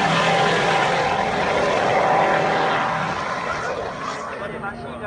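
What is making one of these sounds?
A high-revving Formula One car races past and fades into the distance.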